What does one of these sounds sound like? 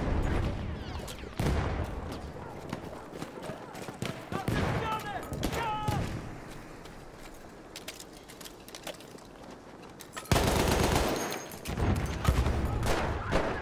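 A light machine gun fires.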